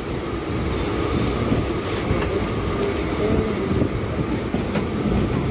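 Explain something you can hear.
A train rumbles and rattles along the tracks.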